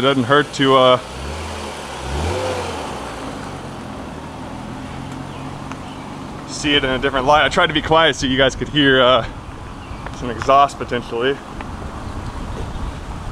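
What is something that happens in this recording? A sports car engine rumbles and revs as the car pulls away.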